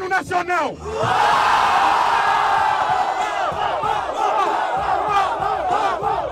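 A crowd cheers and shouts loudly outdoors.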